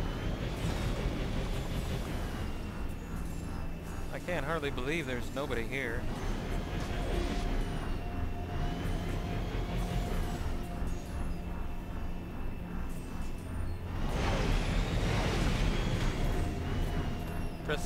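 A hovering vehicle's engine hums steadily with a low rumble.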